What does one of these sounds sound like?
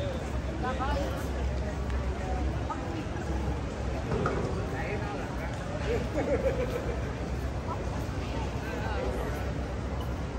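A crowd of people chatters outdoors in a busy street.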